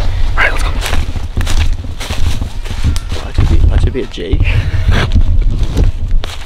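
Footsteps crunch through dry leaves on a forest floor.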